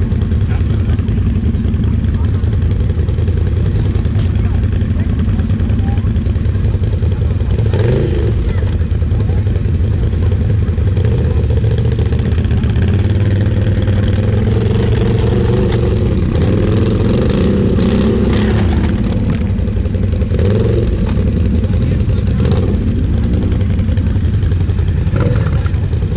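A quad bike engine idles with a low, steady rumble close by.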